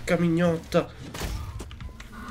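A heavy blow strikes a body with a wet thud.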